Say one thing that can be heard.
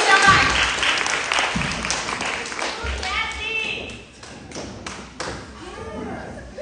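Young women sing together into microphones in lively close harmony.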